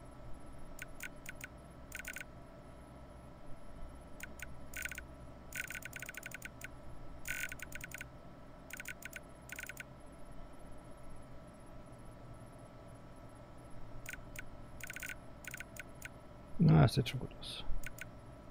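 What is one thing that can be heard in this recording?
Short electronic blips chirp in quick bursts.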